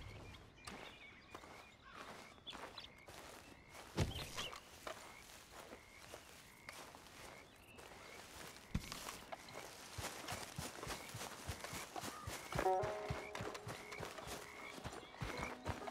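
Footsteps rustle through grass and undergrowth.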